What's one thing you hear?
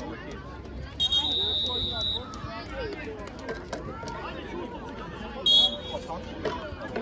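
A referee blows a whistle in long, shrill blasts.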